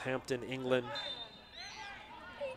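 A referee's whistle blows briefly in the distance.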